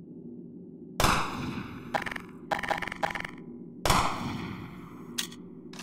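A weapon clicks and clatters as it is switched.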